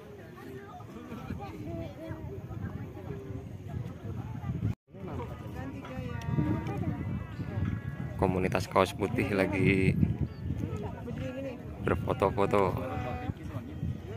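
A group of young people chat and call out nearby outdoors.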